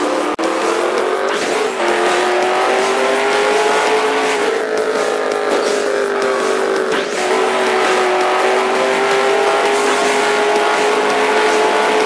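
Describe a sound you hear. A racing car engine roars at high speed, its pitch shifting with gear changes.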